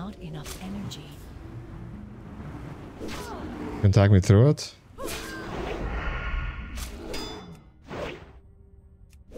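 Swords clang and slash in a fight.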